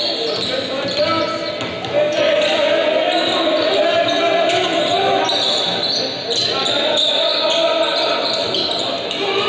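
A crowd cheers and shouts through a television speaker.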